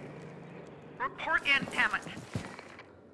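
A woman speaks urgently through a radio.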